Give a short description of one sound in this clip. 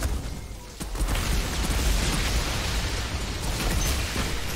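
Fire roars and crackles in a burst of flames.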